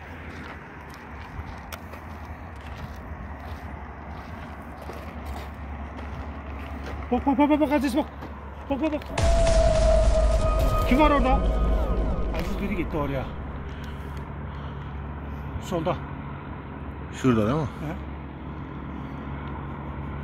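Footsteps crunch on dry ground and brush.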